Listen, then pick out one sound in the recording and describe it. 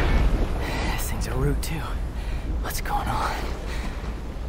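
A young man speaks tensely in a low voice.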